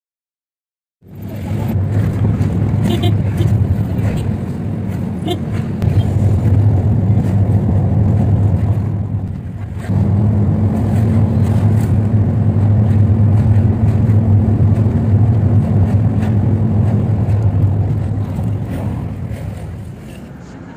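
A bus engine drones low as the bus drives along a road.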